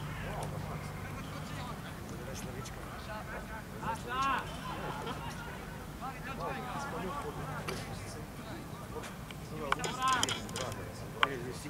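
Boys shout to each other across an open field outdoors.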